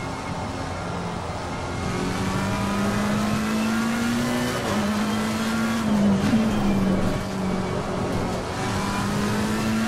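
A racing car engine roars steadily, rising in pitch and dropping with each gear change.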